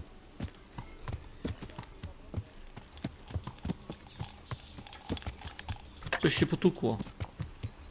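A horse's hooves clop steadily on a dirt path.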